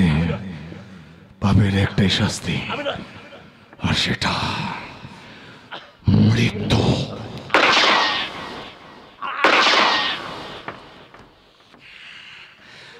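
A man shouts angrily over a microphone.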